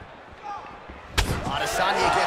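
A kick lands with a sharp thud.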